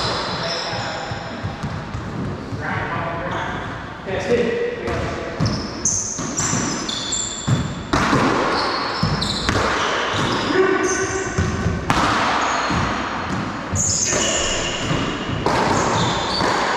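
A racquetball smacks hard against the walls of an echoing court.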